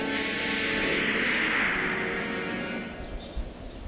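A shimmering magical chime rings out and slowly fades.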